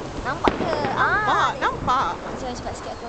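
Fireworks whistle and screech with a warbling pitch.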